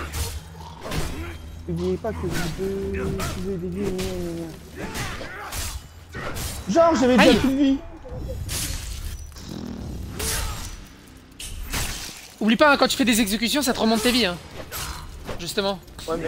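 Swords clash and strike in quick blows.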